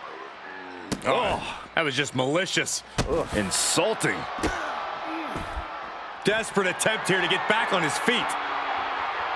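Heavy thuds land as two wrestlers slam into each other.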